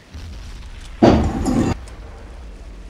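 A shell explodes with a loud boom.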